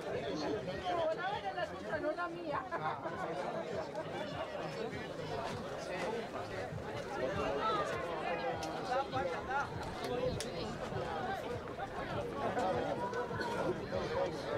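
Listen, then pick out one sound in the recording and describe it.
A crowd of spectators murmurs and calls out in the distance outdoors.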